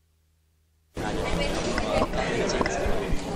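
A middle-aged woman speaks calmly into microphones up close.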